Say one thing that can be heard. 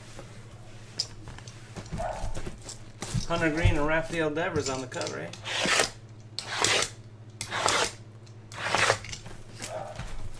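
Cardboard boxes knock and slide against each other.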